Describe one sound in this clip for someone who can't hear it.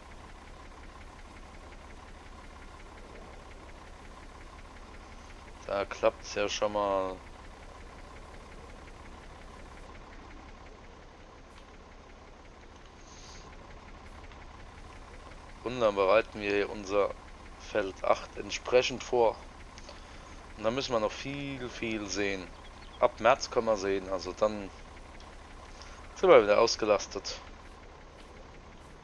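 A tractor engine idles with a low, steady hum.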